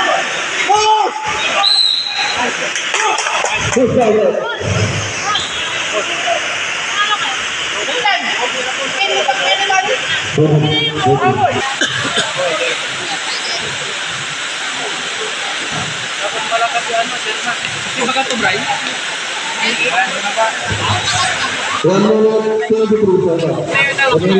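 Young men shout and call out to each other nearby.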